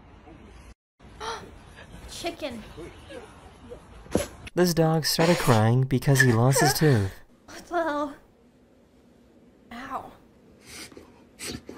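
A young woman talks and laughs with animation close to a microphone.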